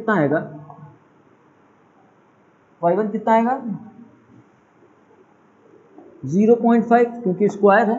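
A young man speaks calmly, explaining, heard close in a slightly echoing room.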